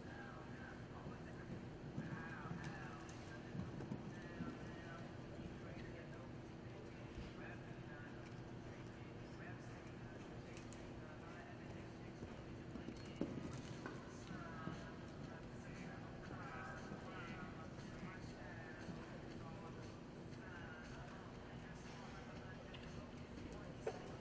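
A horse's hooves thud as it canters on arena sand in a large indoor arena.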